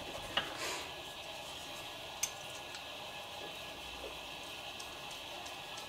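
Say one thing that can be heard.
A screwdriver scrapes and clicks against a small plastic part.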